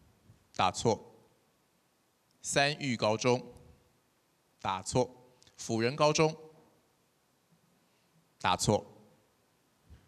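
A man speaks loudly in short bursts over a loudspeaker in a large hall.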